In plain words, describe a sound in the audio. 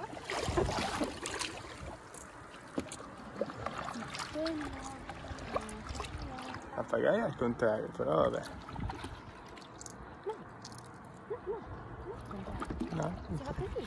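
Water laps against a paddleboard.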